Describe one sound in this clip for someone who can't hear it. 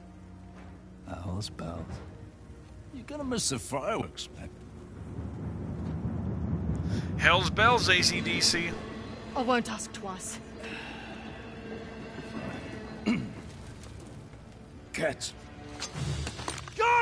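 A man speaks mockingly in a strained voice.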